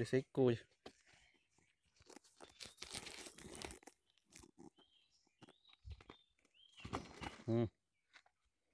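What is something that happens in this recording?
A plastic sack rustles and crinkles close by.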